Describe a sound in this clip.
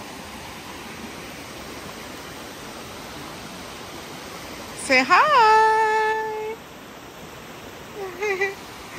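Shallow water trickles over stones.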